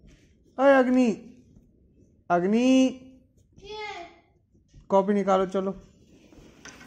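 A young girl speaks in short, sing-song phrases close by.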